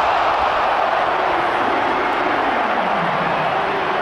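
A crowd of fans claps their hands.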